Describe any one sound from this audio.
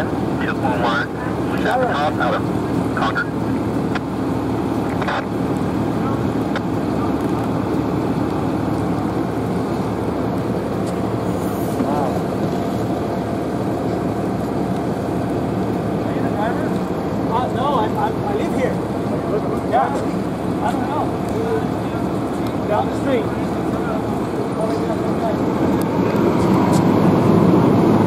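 A large fire roars and crackles steadily outdoors.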